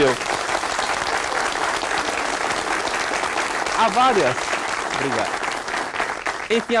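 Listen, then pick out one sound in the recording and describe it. A large crowd claps and cheers steadily.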